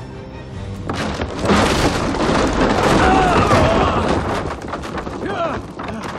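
Wooden planks crash and clatter as a structure collapses.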